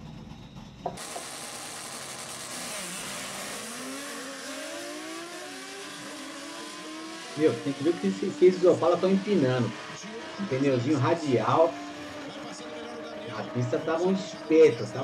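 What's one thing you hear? Two race cars accelerate hard down a track with roaring engines.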